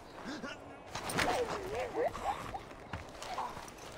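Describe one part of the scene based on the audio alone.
A man grunts and groans in pain.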